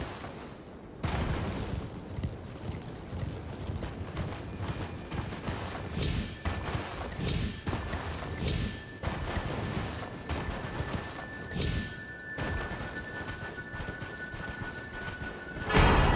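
A horse gallops, its hooves thudding on snow.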